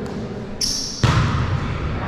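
A volleyball is struck hard with a hand on the serve.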